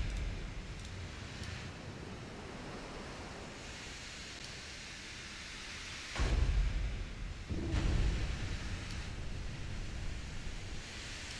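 Waves wash against a moving ship's hull.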